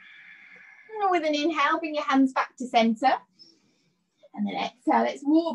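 A woman speaks calmly through a microphone, as if on an online call.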